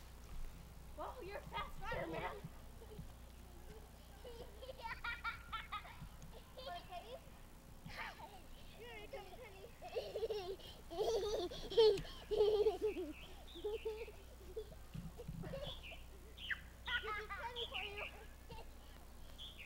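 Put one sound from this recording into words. A young boy laughs and squeals with delight close by.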